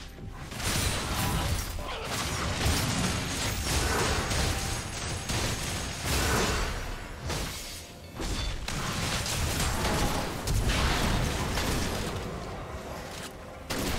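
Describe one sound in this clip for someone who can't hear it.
Game weapons clash and strike in quick bursts.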